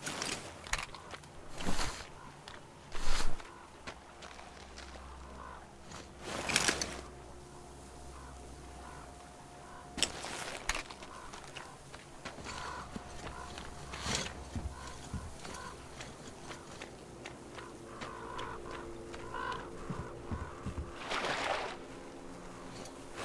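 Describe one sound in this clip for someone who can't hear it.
Footsteps crunch on frozen ground.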